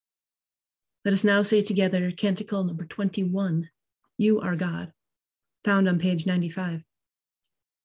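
A woman speaks calmly, heard close through an online call microphone.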